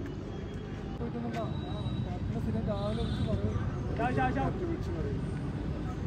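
People chatter and call out outdoors at a distance.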